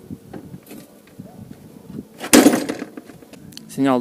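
A metal kart frame clanks down onto the ground.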